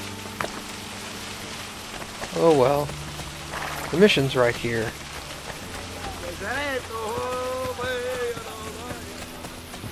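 Footsteps run quickly over stone and grass.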